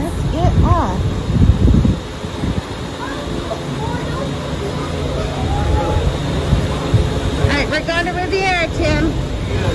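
Overhead machinery hums steadily nearby.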